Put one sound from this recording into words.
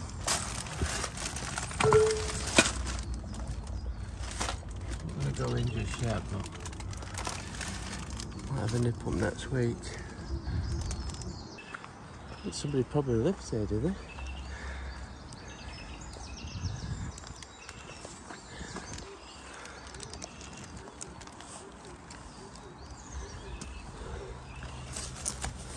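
Footsteps crunch and scuff on rubble and stone paving.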